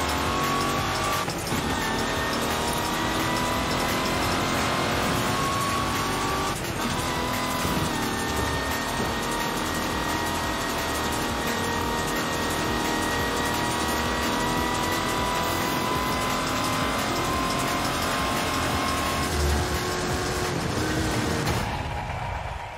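A racing engine roars loudly at high speed.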